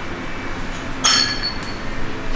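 Barbell plates clank as a man lifts a bar.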